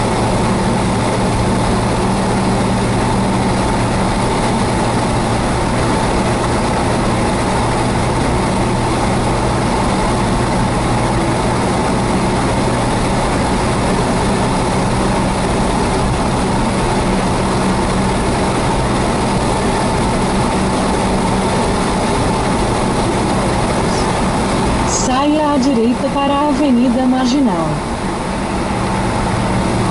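A car cruises at highway speed, heard from inside the cabin.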